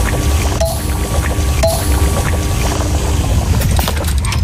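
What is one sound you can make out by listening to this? An old computer terminal plays short electronic tones.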